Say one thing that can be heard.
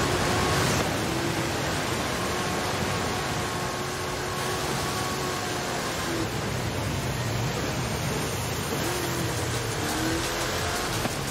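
Tyres hiss and splash through water.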